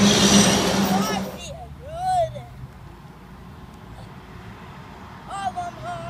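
A young boy shouts excitedly outdoors.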